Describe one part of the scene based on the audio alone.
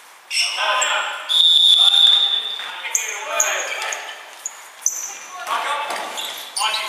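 Young men call out across an echoing hall.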